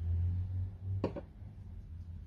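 A small plastic bottle is set down on a table with a click.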